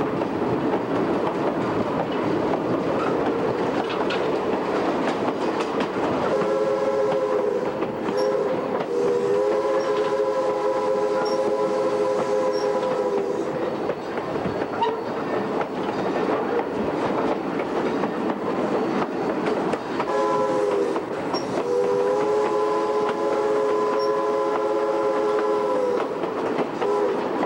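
Train wheels clatter and rumble along the rails.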